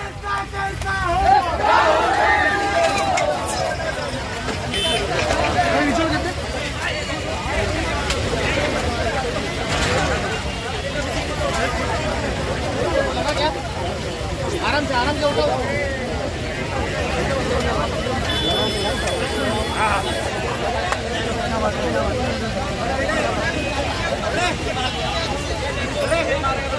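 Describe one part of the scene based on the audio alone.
A crowd of men shouts and chants loudly close by.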